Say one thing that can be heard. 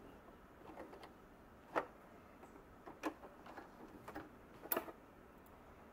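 Heavy fabric rustles and taps against a sewing machine.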